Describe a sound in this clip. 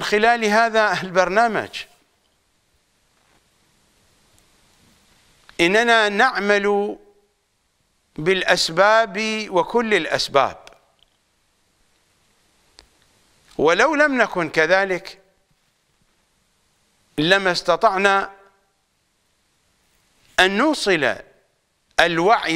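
An elderly man speaks slowly and firmly into a close microphone, with long pauses.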